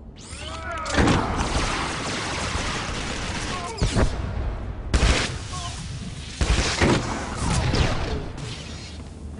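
Blaster shots fire in rapid bursts with sharp zaps.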